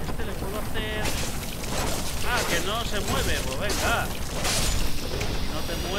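Metal weapons clash and clang.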